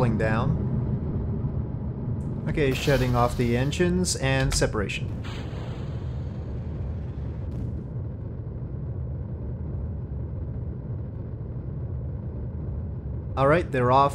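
A rocket engine roars with a steady low rumble.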